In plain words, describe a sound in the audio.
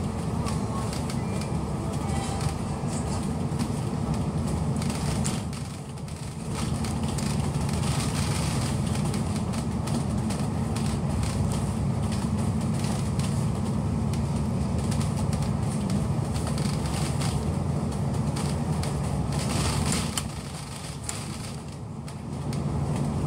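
A train rumbles and rattles steadily along the tracks, heard from inside.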